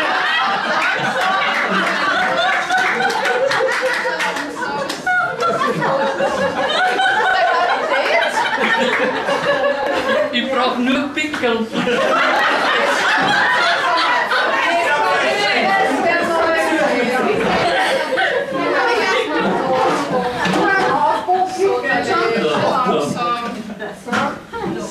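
A crowd of men and women chatter and laugh loudly in a room.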